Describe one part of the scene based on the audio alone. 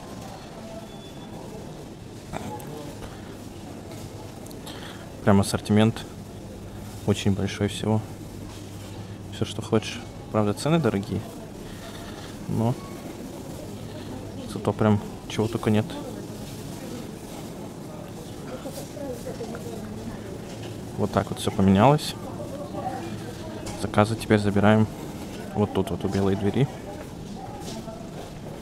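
Shoppers murmur quietly in the background.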